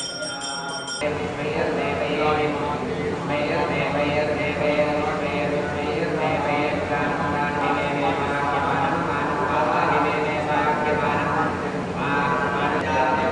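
A man chants in a steady voice.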